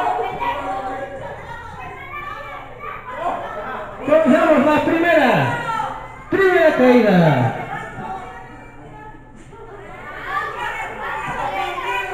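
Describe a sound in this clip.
A crowd of spectators shouts and cheers loudly nearby.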